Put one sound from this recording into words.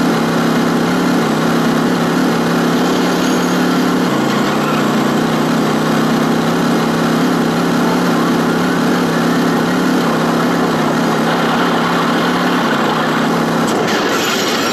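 A video game car engine drones as the car drives.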